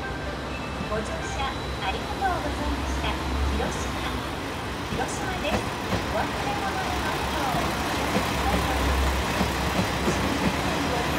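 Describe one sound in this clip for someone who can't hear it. A train pulls into the station, its wheels squealing and screeching on the rails.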